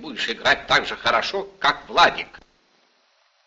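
An elderly man speaks calmly and closely.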